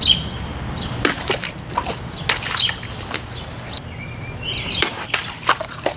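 Plastic bottles burst and splash as a knife slices through them.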